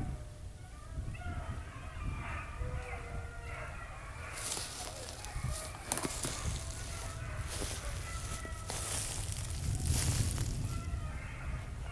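Boots crunch through dry grass.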